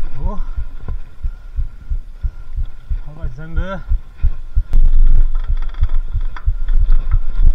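A bicycle frame rattles and clatters over roots and ruts.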